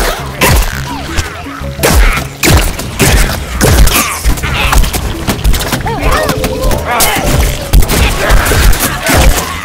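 Cannon shots boom and thud repeatedly.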